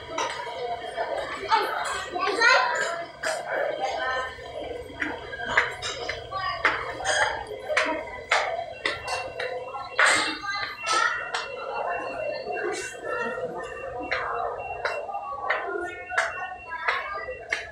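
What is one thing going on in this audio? Footsteps climb a stairway.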